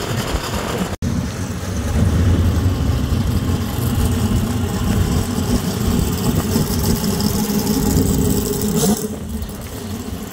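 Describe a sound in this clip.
A car's engine rumbles deeply as the car drives slowly past.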